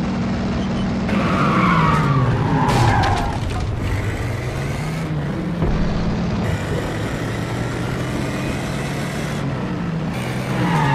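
A car engine hums steadily, rising and falling in pitch as it drives.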